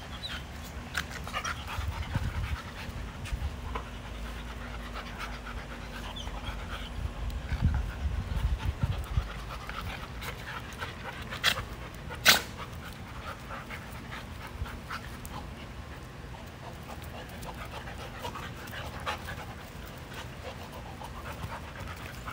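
Dog paws scuffle on bare dirt.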